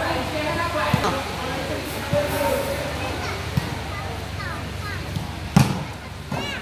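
A ball is struck with a sharp thump.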